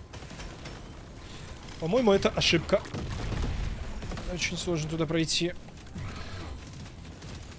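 Game weapons fire and explosions burst.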